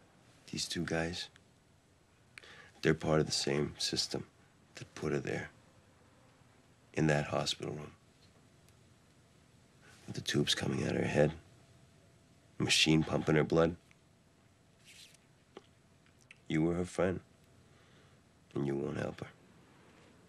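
A man speaks quietly and earnestly, close by.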